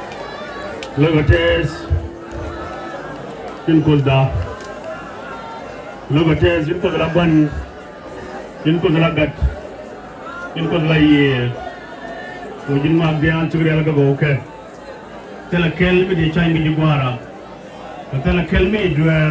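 A man speaks with animation into a microphone over loudspeakers outdoors, in short bursts with pauses.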